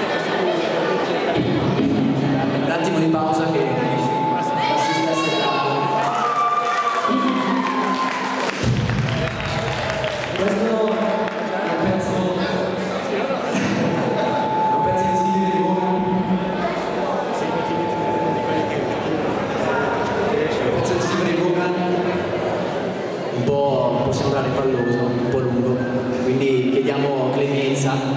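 A man sings into a microphone in a large echoing hall.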